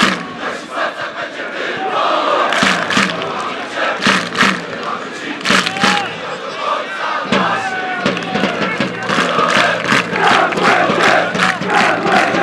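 A large crowd chants loudly together outdoors.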